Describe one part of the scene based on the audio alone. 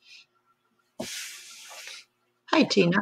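Cloth rustles softly.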